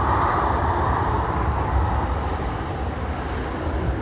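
A jet airliner's engines roar as it rolls past.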